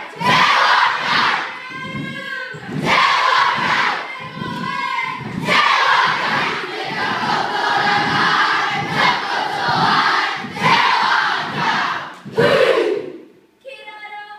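Children stamp and slap in rhythm.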